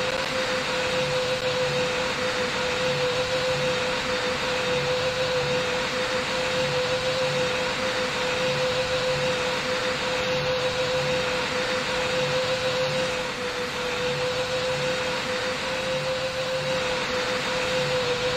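Jet engines roar steadily with a constant droning hum.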